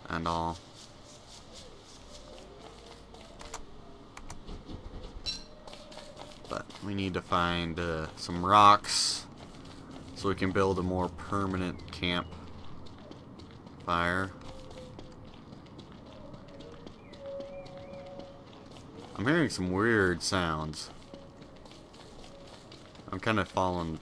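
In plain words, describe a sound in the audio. Footsteps patter steadily over soft ground.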